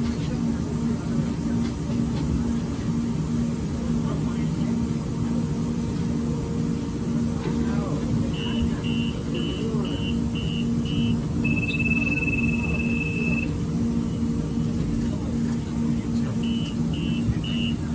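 A subway train rumbles steadily.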